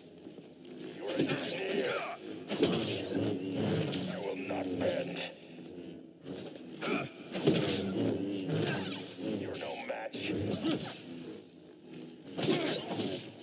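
Energy blades clash with sharp crackling hits.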